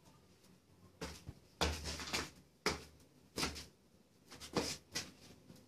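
Footsteps approach across a hard floor.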